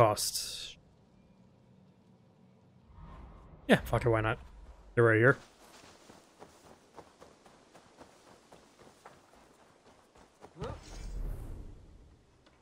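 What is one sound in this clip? A young man talks with animation, close to a microphone.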